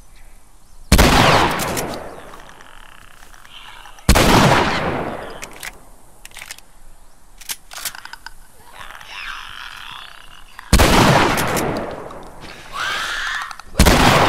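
A shotgun fires loud blasts that echo and fade.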